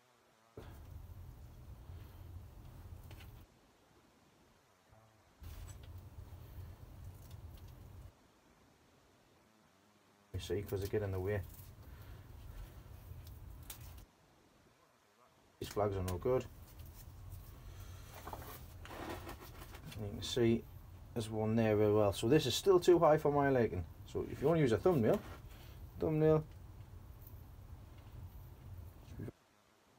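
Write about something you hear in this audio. Hands rustle plant leaves and press into soil in a pot.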